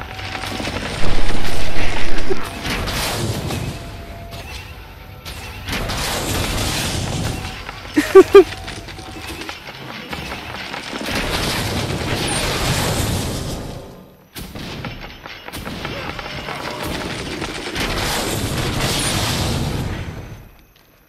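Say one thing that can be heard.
A siege cannon fires with heavy, rumbling blasts.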